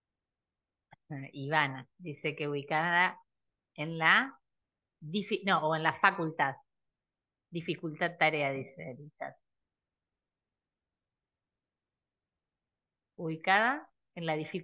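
A woman speaks calmly into a close headset microphone, as if on an online call.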